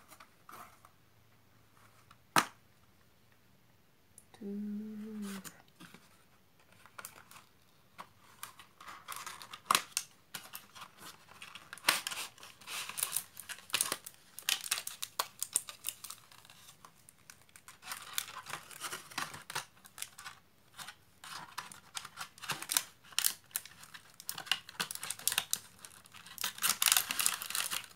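Cardboard and plastic packaging rustle and crinkle as hands handle them.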